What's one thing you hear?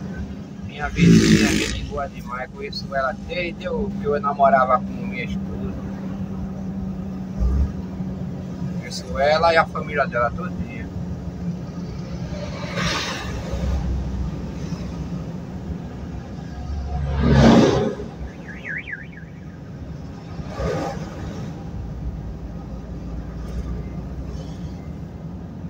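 A vehicle's engine drones steadily from inside the cab.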